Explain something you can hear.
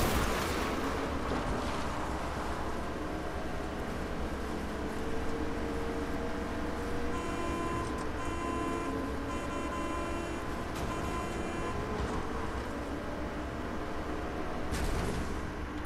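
A truck engine rumbles as the truck drives over grass.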